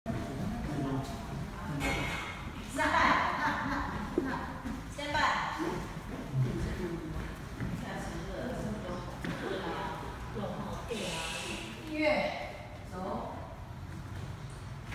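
Men and women chat in the background of an echoing hall.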